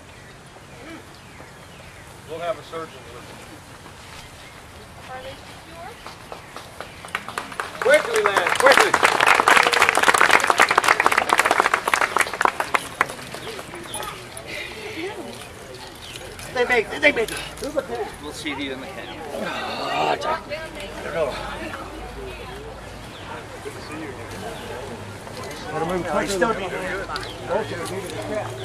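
A crowd of adults and children chatters outdoors.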